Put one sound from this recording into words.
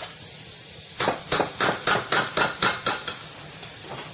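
A spoon scrapes and clinks against a metal bowl.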